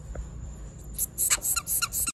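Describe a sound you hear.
Baby animals squeak in high, rapid peeps close by.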